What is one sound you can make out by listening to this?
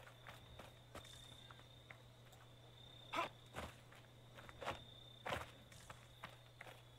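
Footsteps crunch quickly over sand and rock.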